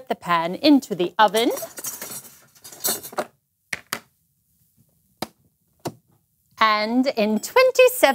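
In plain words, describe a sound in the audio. A woman speaks with animation, her voice lively and sing-song.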